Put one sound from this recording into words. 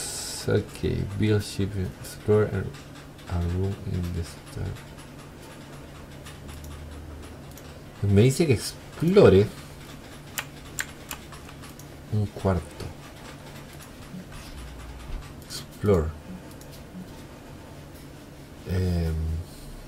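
A young man talks casually into a close microphone, in short bursts with pauses.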